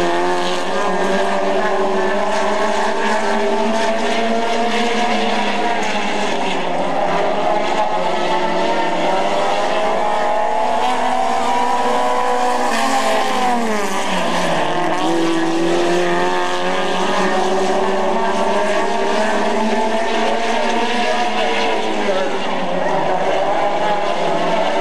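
Racing car engines roar and whine as cars speed past, their pitch rising and falling.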